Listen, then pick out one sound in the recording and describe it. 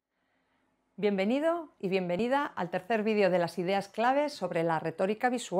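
A woman speaks clearly and with animation, close to a microphone.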